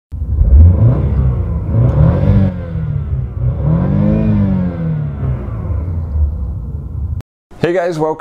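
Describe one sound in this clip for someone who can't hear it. A car engine revs up and down, rising and falling in pitch.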